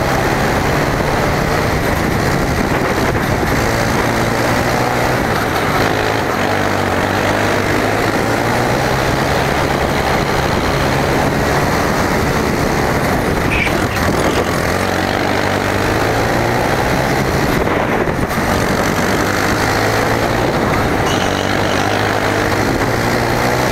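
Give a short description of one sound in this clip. A kart engine buzzes loudly close by, its pitch rising and falling with the throttle.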